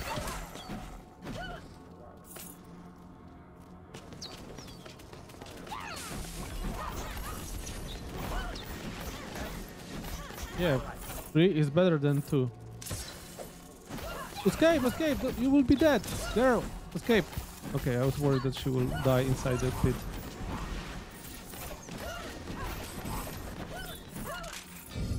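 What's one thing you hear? Fighting sounds with blasts and hits ring out.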